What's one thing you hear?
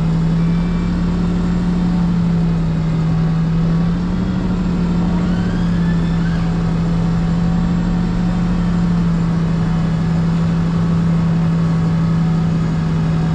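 A truck's diesel engine hums steadily up close.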